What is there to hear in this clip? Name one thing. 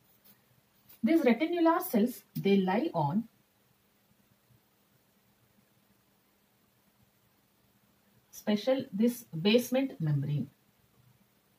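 A young woman speaks calmly and clearly, close by, in short phrases with long pauses.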